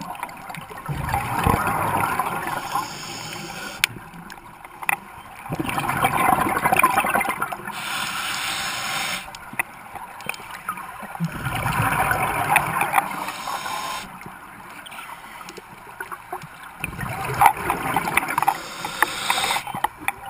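Bubbles from a diver's regulator rush and gurgle in regular bursts.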